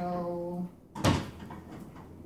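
A drawer slides shut with a thud.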